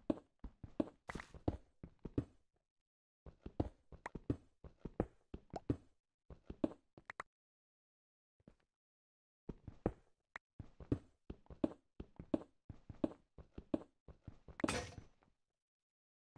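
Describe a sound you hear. A pickaxe chips and breaks stone blocks in quick bursts.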